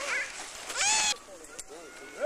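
A girl shrieks happily close by.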